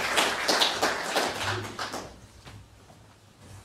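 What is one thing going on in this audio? An audience applauds in an echoing hall, then the clapping fades.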